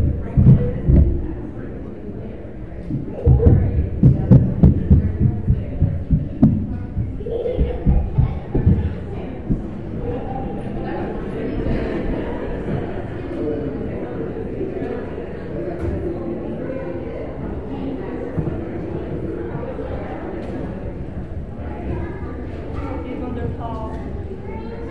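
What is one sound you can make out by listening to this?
A crowd of men and women murmur and chat in a large echoing room.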